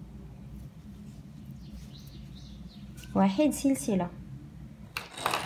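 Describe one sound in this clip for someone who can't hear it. A crochet hook softly clicks and draws thread through fabric.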